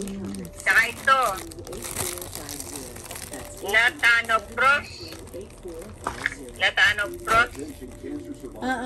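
An elderly woman talks close by in short bursts.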